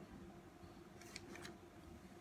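Paper rustles under a hand.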